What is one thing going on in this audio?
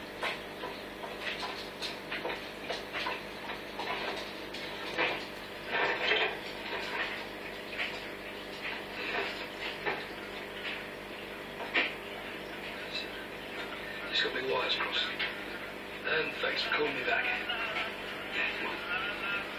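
An aquarium filter hums steadily.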